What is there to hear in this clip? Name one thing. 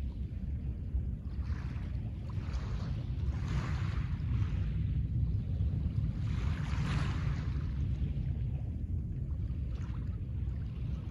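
Small waves lap gently on a pebble shore.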